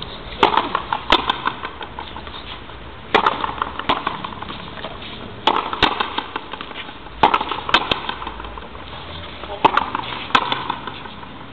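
A hard ball smacks against a wall and is struck by rackets, echoing off the walls outdoors.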